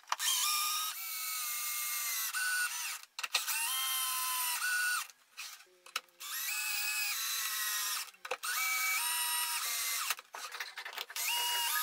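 A cordless drill whines in short bursts as it drives screws into wood.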